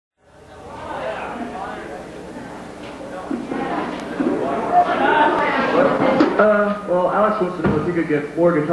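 A man talks loudly through a microphone in an echoing hall.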